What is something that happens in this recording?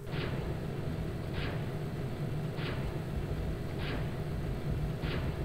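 Dark, rumbling music plays with a hissing pulse that comes back about every second.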